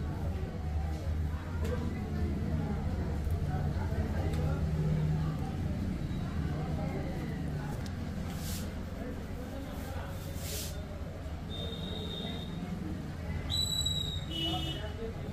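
Hands rub and scrub through hair close by.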